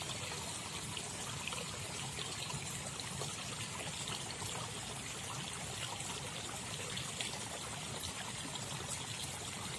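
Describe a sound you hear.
A slow river flows quietly outdoors.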